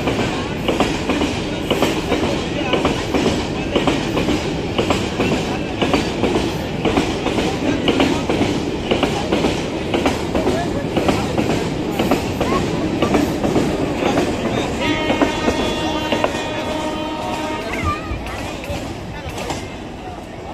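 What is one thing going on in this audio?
Train wheels clatter rhythmically over the rail joints as a long freight train rolls past close by.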